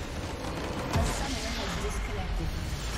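A large explosion booms.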